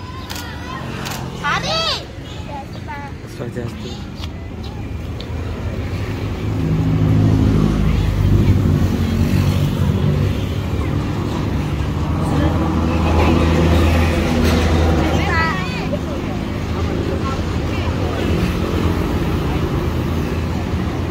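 A motorbike engine hums as it passes on a road.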